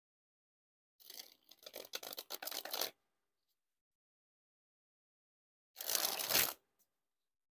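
Playing cards riffle and flutter as a deck is shuffled close by.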